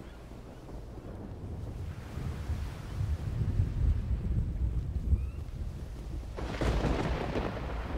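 Waves wash gently onto a shore.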